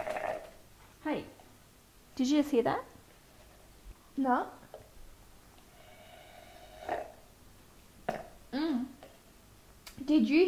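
A woman speaks calmly nearby, in short phrases.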